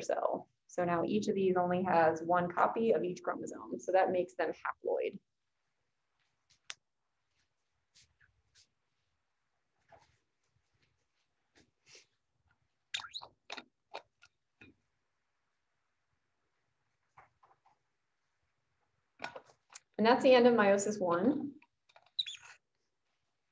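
A woman lectures calmly through an online call, pausing now and then.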